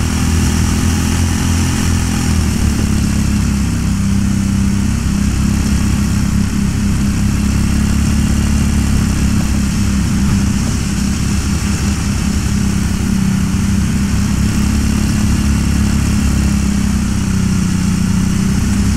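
A small kart engine buzzes steadily, rising and falling in pitch with the throttle.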